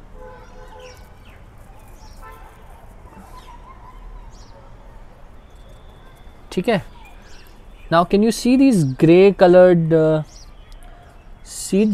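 Small seeds patter into a metal bowl.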